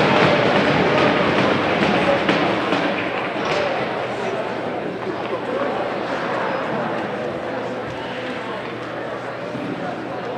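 Ice skates scrape and carve on ice.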